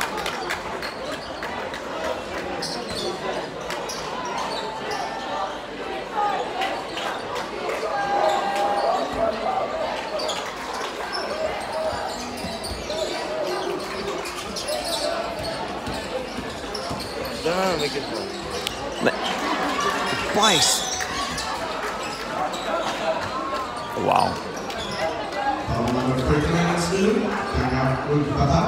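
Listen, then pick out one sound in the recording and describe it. A crowd murmurs and chatters in a large echoing hall.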